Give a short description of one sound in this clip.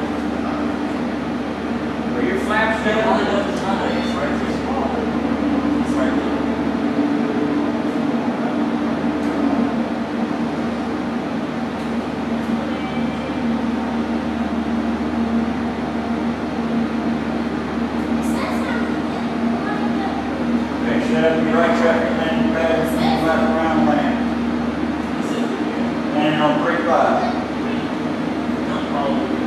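A steady low hum of computers fills the room.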